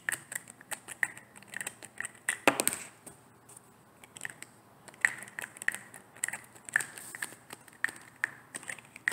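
Fingernails tap and click on a plastic bottle close by.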